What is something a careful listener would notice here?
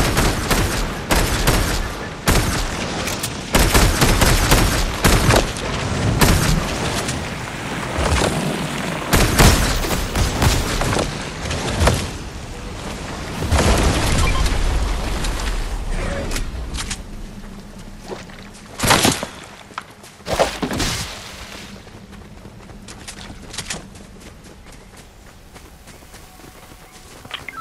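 Footsteps rustle through leafy plants and thump on the ground.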